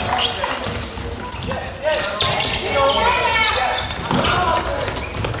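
Sneakers squeak sharply on a hard indoor court in an echoing hall.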